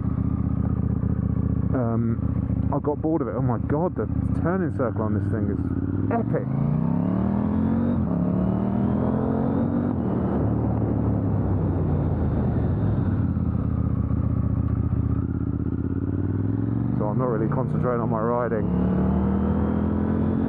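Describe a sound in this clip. A motorcycle engine roars and rises in pitch as it speeds up through the gears.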